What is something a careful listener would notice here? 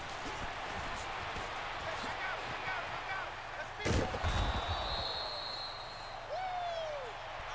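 A stadium crowd cheers and roars.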